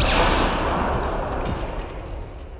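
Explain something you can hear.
A video game explosion booms and fades.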